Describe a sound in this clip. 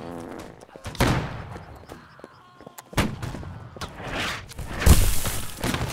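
Muskets fire in loud, sharp bangs, some close and some farther off.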